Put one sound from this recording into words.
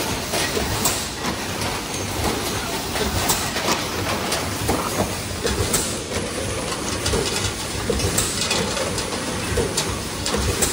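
A machine hums and clatters steadily.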